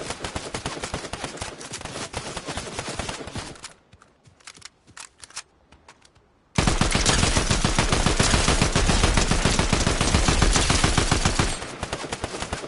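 Rapid automatic gunfire rattles loudly.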